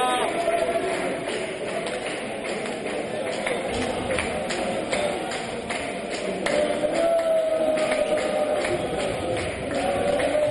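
A ball bounces on a wooden court.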